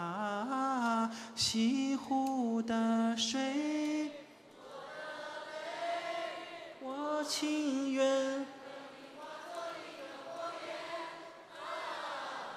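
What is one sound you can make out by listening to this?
A man sings loudly through a microphone in a large hall.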